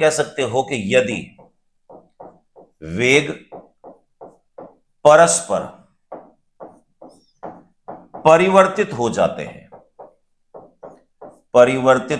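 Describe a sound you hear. A middle-aged man explains calmly into a close microphone.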